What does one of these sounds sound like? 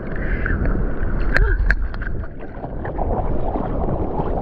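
A hand paddles and splashes through water.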